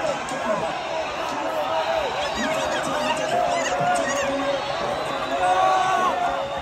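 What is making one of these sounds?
A large crowd shouts and cheers loudly in a big echoing hall.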